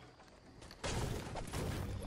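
A pickaxe chops into a tree with hard thuds.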